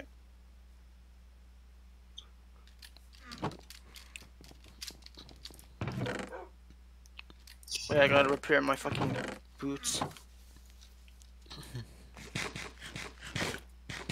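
A wooden chest creaks open and thuds shut.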